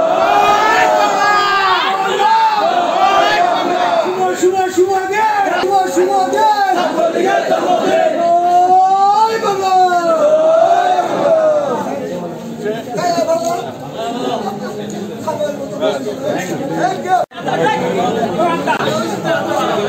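A crowd of men sings together loudly and close by.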